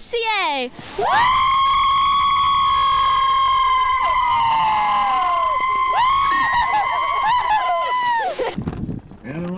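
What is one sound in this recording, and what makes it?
Young women scream loudly and shrilly with excitement.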